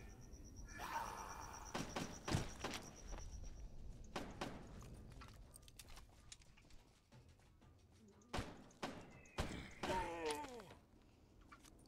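Gunshots crack out in short bursts.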